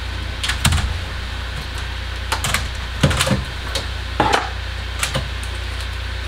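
Hard parts knock and clatter as a computer board is handled.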